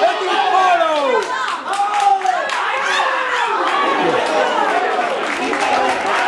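A crowd of spectators nearby shouts and cheers with excitement.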